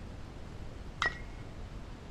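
A bat cracks sharply against a baseball.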